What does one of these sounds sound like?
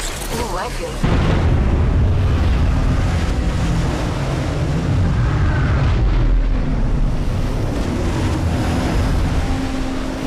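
A large aircraft engine roars steadily with a deep rumble.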